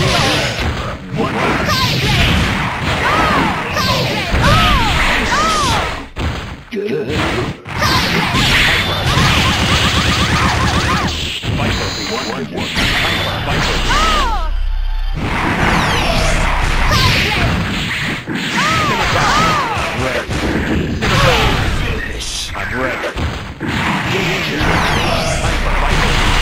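Fighting game punches, blasts and explosions crash in quick succession.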